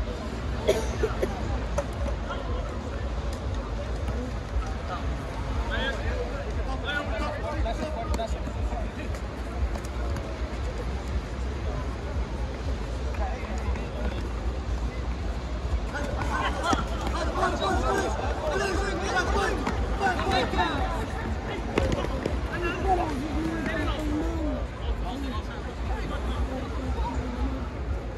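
Men shout and call out across the court.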